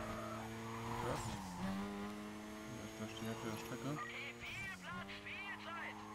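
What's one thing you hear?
A sports car engine shifts up through the gears.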